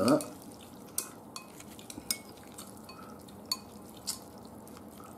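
Chopsticks click lightly against a bowl.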